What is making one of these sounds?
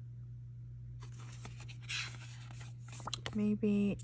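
Stiff paper sheets rustle as they are flipped by hand.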